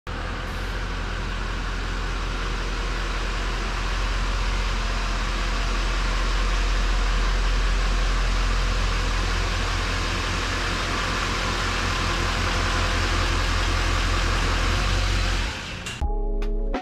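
A diesel pickup engine rumbles as the truck rolls slowly closer, echoing in an enclosed space.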